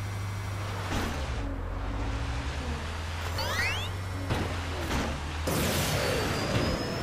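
A car scrapes and bumps against a wall.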